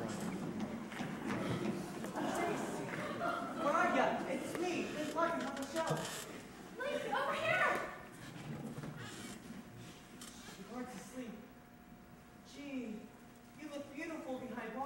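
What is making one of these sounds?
A young actress speaks loudly in a large echoing hall.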